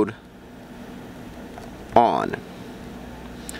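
A keypad button clicks softly as it is pressed.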